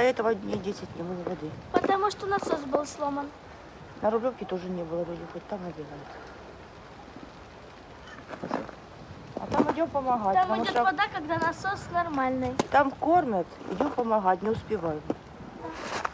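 A middle-aged woman speaks calmly, close by, outdoors.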